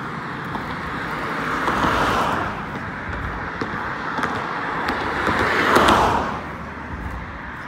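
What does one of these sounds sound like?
Cars drive past on a road, their tyres hissing as they pass close by.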